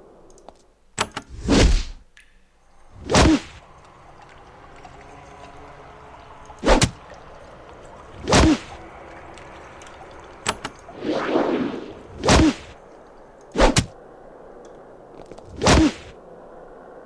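Weapons strike again and again in a fight, in short, sharp bursts.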